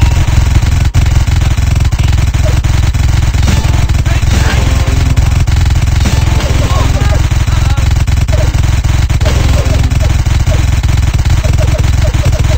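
A paintball gun fires in rapid bursts of pops.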